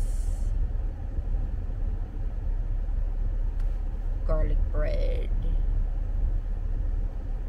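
A car engine hums low and steady inside the cabin.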